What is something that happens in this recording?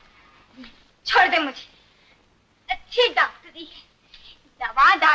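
A young woman cries out in distress close by.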